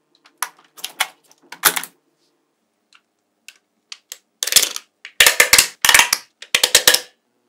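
Small magnetic steel balls click and clatter as they snap onto a layer of magnetic balls.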